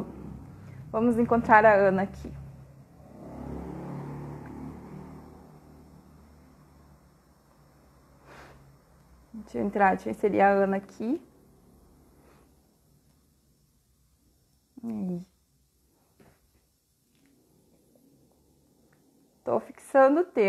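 A woman speaks softly and closely into a microphone, in short bursts with pauses.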